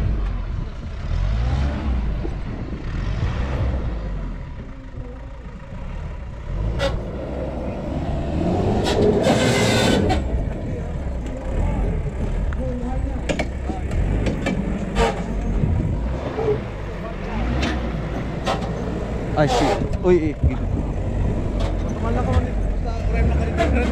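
Small tyres crunch over loose dirt.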